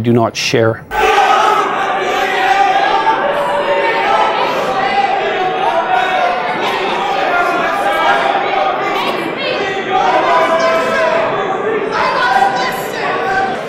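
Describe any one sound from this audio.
A crowd shouts and chants loudly in a large echoing hall.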